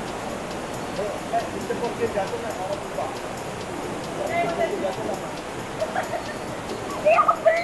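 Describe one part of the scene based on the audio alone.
Young people talk and laugh nearby outdoors.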